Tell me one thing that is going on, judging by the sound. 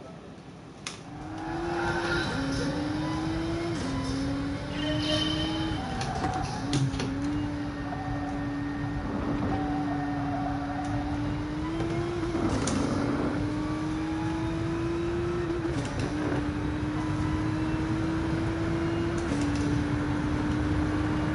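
A racing car engine revs hard and rises in pitch, dropping with each gear change.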